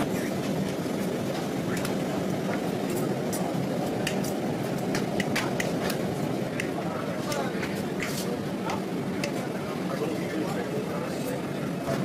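A fork clinks and scrapes against a plate.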